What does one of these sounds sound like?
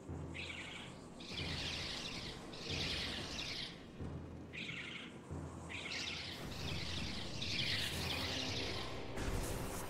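A small metal ball rolls with a rising whirring hum.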